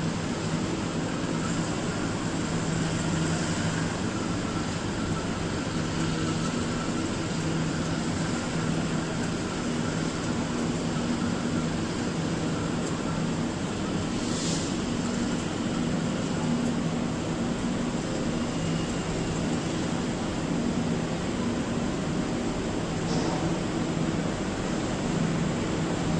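A train engine hums and rumbles steadily nearby.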